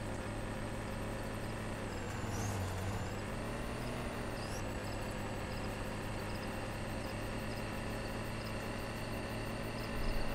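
Tyres rumble over rough gravel.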